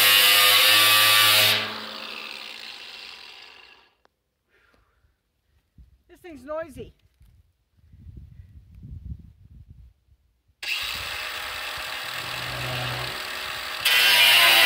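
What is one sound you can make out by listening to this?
An angle grinder whines loudly as it grinds metal, then winds down.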